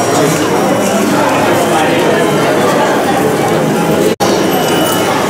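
A large crowd of people chatters loudly indoors.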